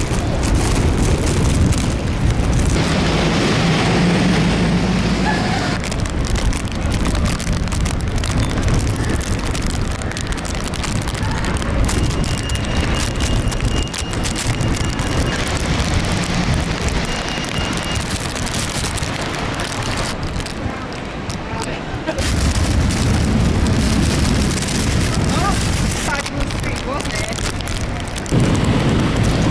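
Strong wind gusts roar outdoors.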